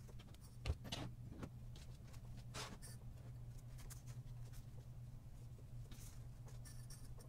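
Paper rustles and crinkles softly against foam as fingers press it down.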